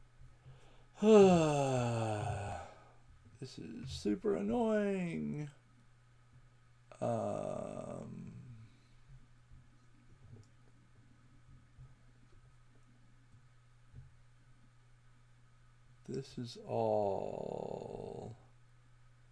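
An elderly man speaks calmly through an online call.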